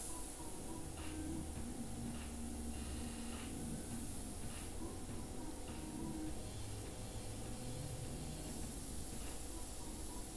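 An airbrush hisses softly and steadily.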